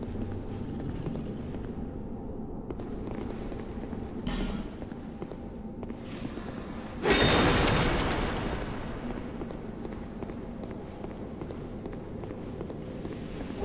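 Armoured footsteps clatter on a stone floor.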